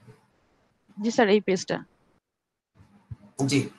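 A young woman speaks through an online call.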